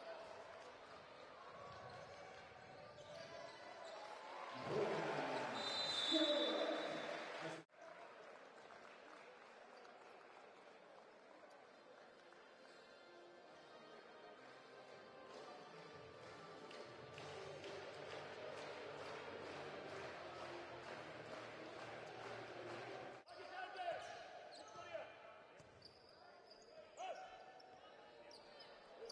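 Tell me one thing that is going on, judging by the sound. A crowd cheers and chatters in a large echoing arena.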